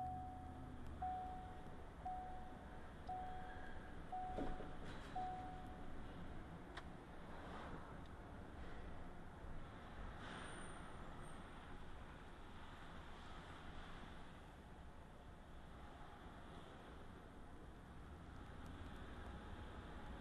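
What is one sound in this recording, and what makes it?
A car drives at low speed, heard from inside the car.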